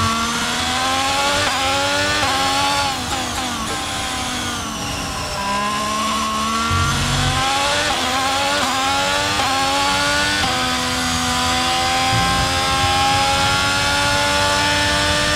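A Formula One car engine in a racing game screams at high revs, shifting up through the gears.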